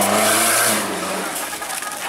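Mud sprays and spatters from spinning tyres.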